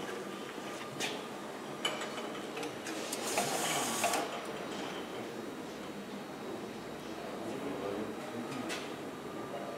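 A labelling machine clicks softly.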